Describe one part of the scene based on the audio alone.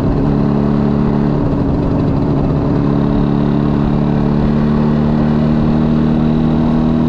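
A motorcycle engine drones steadily up close as it rides along.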